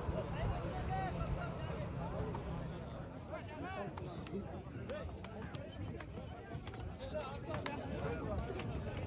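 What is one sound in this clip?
A crowd of men shout over one another outdoors.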